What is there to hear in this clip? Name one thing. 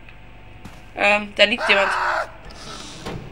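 A creature lets out harsh, shrieking cries.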